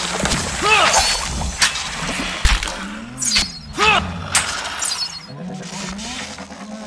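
Magic spells crackle and whoosh.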